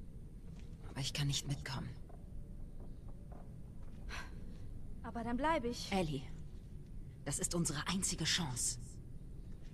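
A woman speaks calmly and earnestly nearby.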